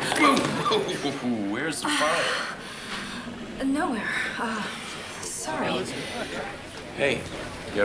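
A man answers in a low voice up close.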